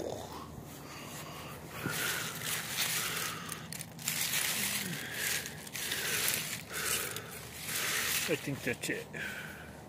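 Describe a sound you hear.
Leaves rustle as a hand pushes through plants.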